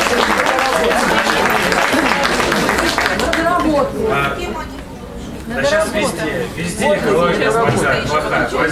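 A man speaks at a microphone through loudspeakers in a large echoing hall.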